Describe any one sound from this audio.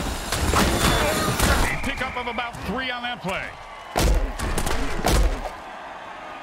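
Armoured players crash together with heavy thuds.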